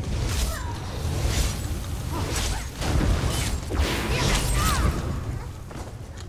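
Magic spells crackle and boom in a noisy fight.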